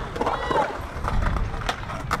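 A skateboard grinds and scrapes along a concrete edge.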